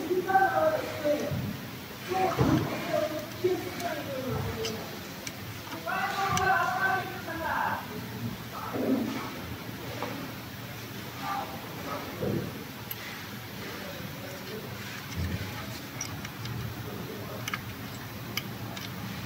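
Plastic wire connectors click and rattle under hands.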